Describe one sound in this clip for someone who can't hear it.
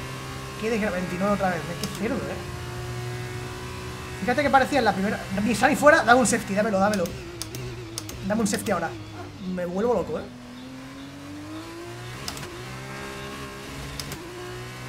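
A race car engine whines and revs up and down.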